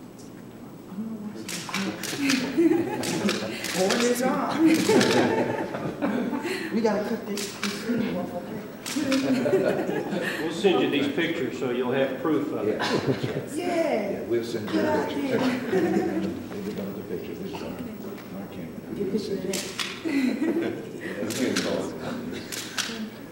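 A woman laughs and talks cheerfully nearby.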